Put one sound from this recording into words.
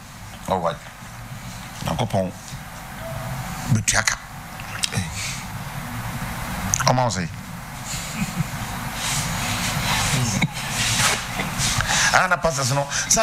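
A middle-aged man speaks calmly and steadily into a close microphone.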